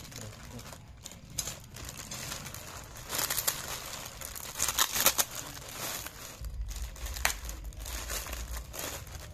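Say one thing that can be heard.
Hands crinkle and rustle thin plastic bags.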